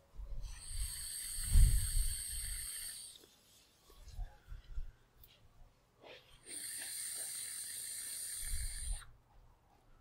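A man exhales with a soft breathy puff.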